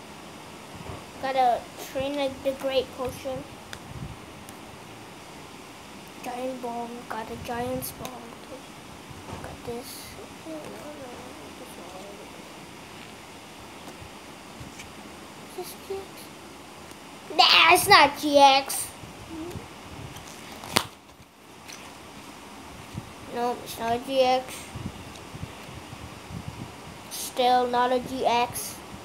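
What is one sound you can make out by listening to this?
Trading cards rustle and flick in a boy's hands.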